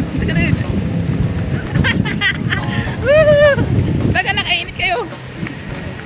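A young child laughs and shouts nearby.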